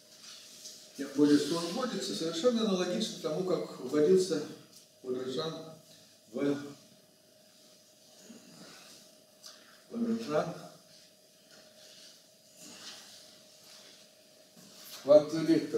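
An elderly man lectures calmly in a room with a slight echo, speaking in bursts with pauses.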